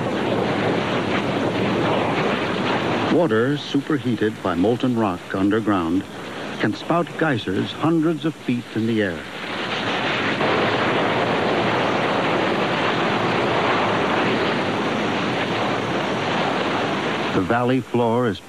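A geyser erupts with a steady, roaring hiss of steam and water.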